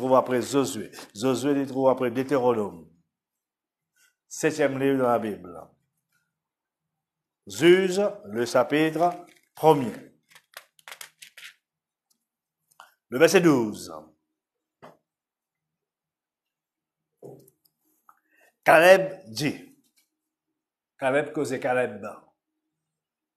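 A man speaks calmly into a clip-on microphone in short phrases with pauses.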